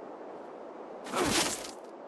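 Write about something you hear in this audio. A burst of snow whooshes loudly.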